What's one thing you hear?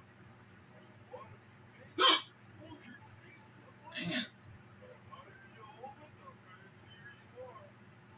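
Faint game sounds play from a television.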